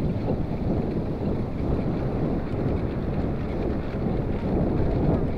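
Wind buffets loudly as a bicycle rides along.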